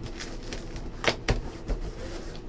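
A cardboard box lid knocks shut.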